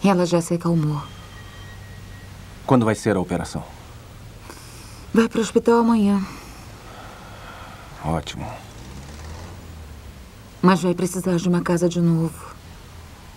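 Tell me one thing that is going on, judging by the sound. A woman speaks tensely, close by.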